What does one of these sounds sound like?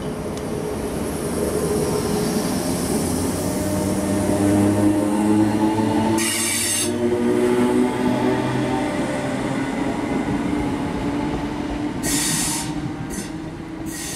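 An electric train rumbles past close by, its motors humming.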